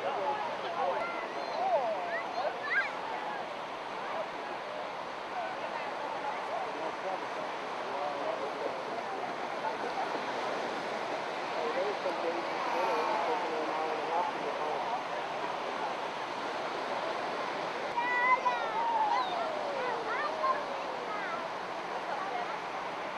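A crowd of people chatters and calls out nearby, outdoors.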